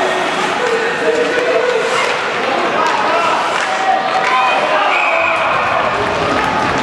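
Skates scrape and hiss across the ice.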